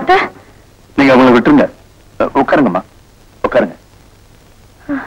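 A woman speaks with distress.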